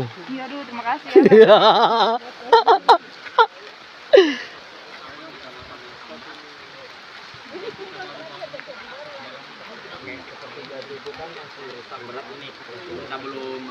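A group of men and women chat quietly outdoors.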